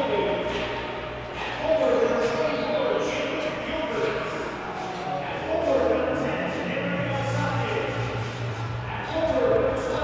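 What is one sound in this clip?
Ice skates scrape and glide across a rink.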